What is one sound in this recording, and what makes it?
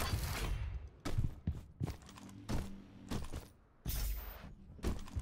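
Gunshots from a video game ring out in short, sharp bursts.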